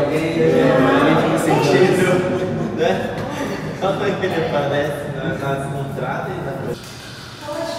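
Several people chatter at once.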